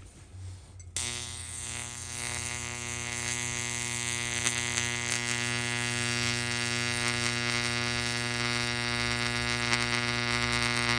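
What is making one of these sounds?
An electric spark buzzes loudly and steadily.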